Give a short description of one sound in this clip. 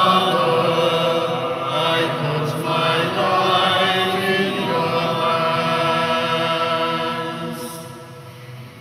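An elderly man sings through a microphone in a large echoing hall.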